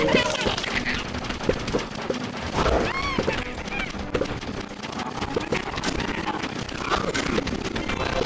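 Cartoon plants rapidly fire peas with quick popping sounds.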